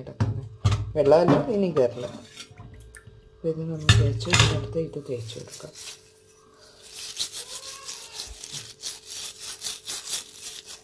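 Water splashes and trickles in a metal sink.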